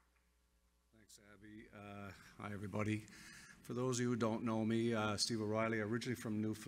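An older man speaks steadily through a microphone in a large hall.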